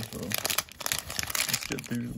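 Trading cards rustle and flick as hands sort through them.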